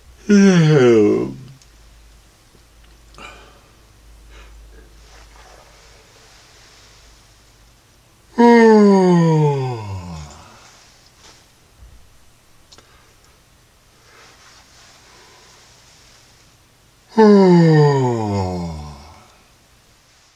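An elderly man close by makes loud wailing calls with his voice, each sliding steeply down in pitch.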